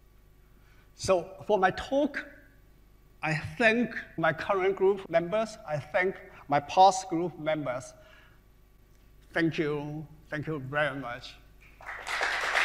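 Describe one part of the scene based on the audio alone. A man speaks calmly into a microphone in a large hall.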